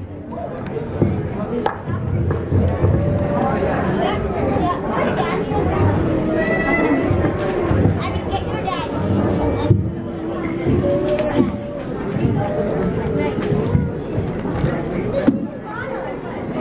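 Children talk and chatter nearby.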